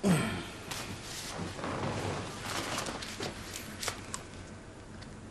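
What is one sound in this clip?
Clothing rustles as a man rubs his arm.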